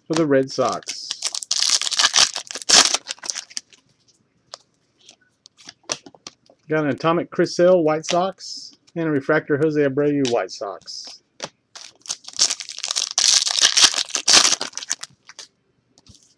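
Plastic wrapping crinkles and tears as hands open it.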